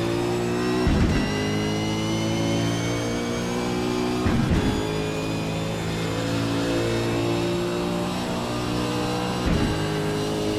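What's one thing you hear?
A gearbox clunks sharply as the car shifts up through the gears.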